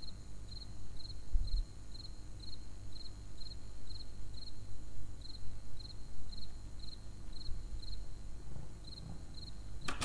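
Soft, quick footsteps tap in a steady rhythm.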